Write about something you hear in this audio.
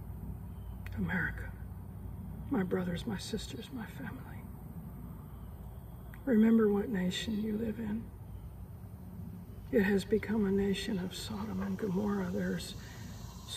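A middle-aged woman speaks calmly and closely into a microphone.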